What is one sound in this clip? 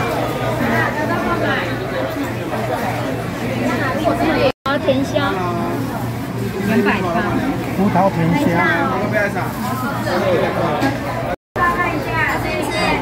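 Many voices chatter around.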